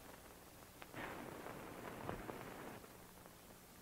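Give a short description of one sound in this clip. A man speaks briefly through a hissy old recording.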